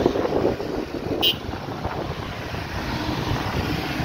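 A pickup truck drives past.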